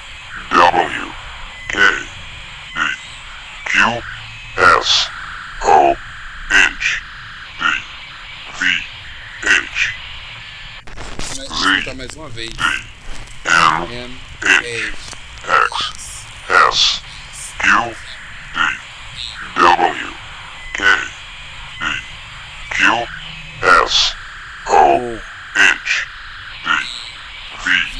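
A young man speaks close to a microphone in short, evenly spaced bursts.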